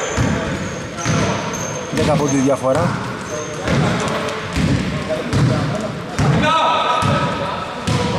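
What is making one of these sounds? A basketball bounces repeatedly on a wooden floor in a large echoing gym.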